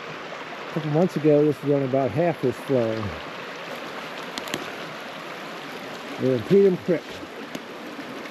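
A stream rushes and gurgles over rocks outdoors.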